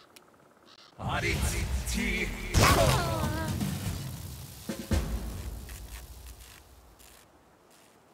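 A magic lightning blast crackles and booms.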